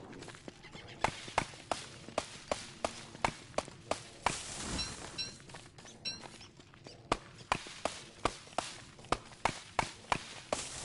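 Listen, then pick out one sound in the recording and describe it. An axe chops into wood with sharp, steady knocks.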